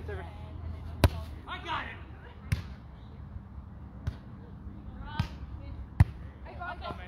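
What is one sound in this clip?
A volleyball is hit with sharp thumps.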